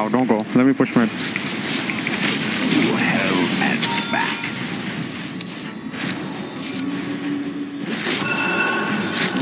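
Magical battle effects whoosh and crackle.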